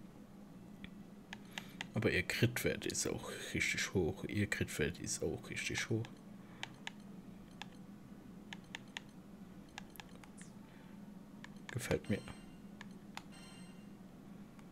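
Short game menu clicks tick as a selection moves from item to item.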